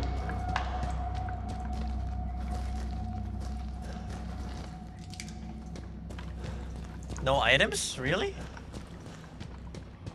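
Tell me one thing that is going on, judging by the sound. Footsteps crunch slowly on loose gravel.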